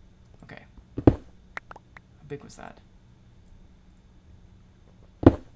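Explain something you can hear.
Game blocks break with short crunching clicks.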